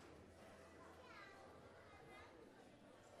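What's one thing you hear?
A man speaks into a microphone in a large echoing hall.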